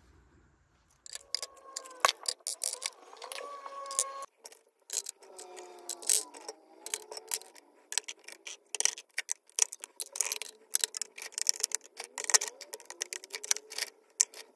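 Plastic items click and clatter as they are set into a plastic organizer.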